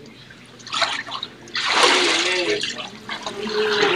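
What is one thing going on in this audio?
Water splashes as a person is dipped under and lifted out.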